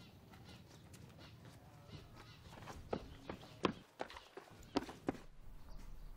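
A girl's footsteps run quickly over a dirt path.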